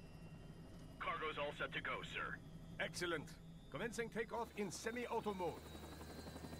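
A man speaks calmly through a headset radio.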